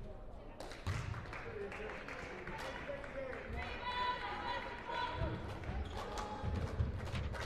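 A crowd murmurs and calls out in the echoing gym.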